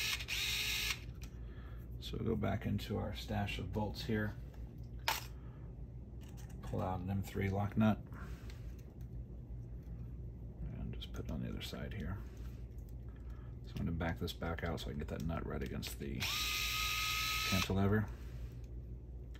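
A screwdriver turns a small screw with faint scraping clicks.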